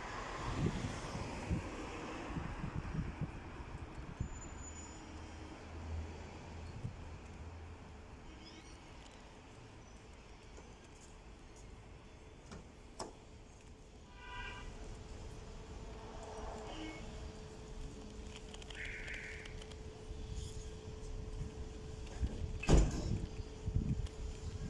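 Outdoors, a steady low hum of city traffic and wind fills the air.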